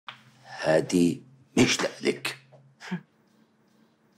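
A man speaks tensely and closely in a low voice.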